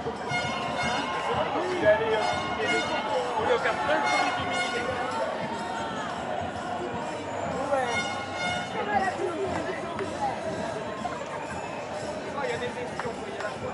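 A large crowd chatters outdoors, with many voices overlapping close by.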